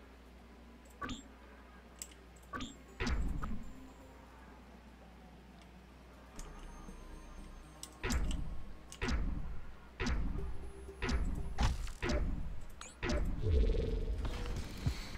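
Game weapons fire and blast in short, loud bursts.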